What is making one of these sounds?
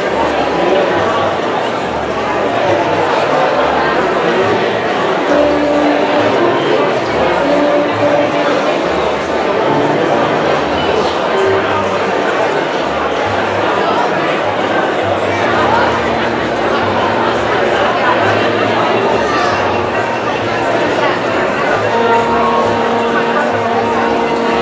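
An orchestra plays loudly in a large echoing hall.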